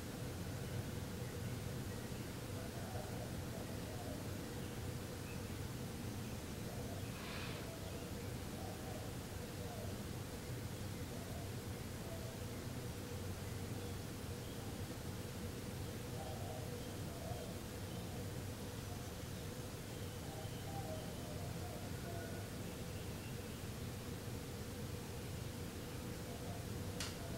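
A man breathes slowly and quietly nearby.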